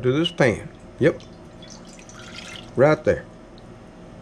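Water pours into a metal pan.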